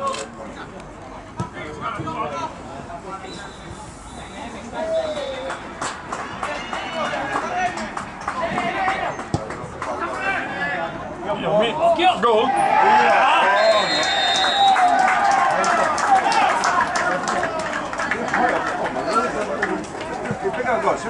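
Spectators shout and cheer outdoors, growing louder as the play nears the goal.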